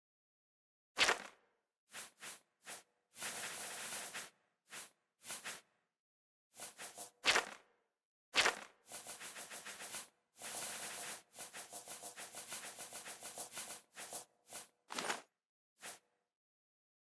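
Soft clicks and swishes sound in quick bursts as a menu is flipped through.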